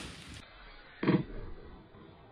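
A smoke charge bursts with a thud.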